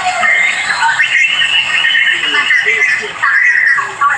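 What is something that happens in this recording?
A man shouts angrily, heard through a small loudspeaker.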